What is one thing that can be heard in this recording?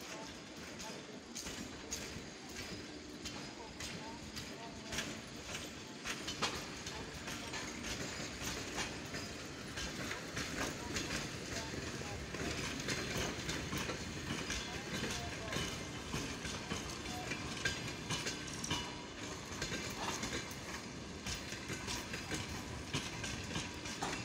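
An electric locomotive hums steadily while it stands with its equipment running.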